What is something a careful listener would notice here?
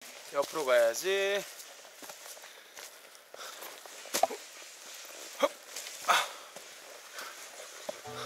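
Footsteps crunch on a dirt trail.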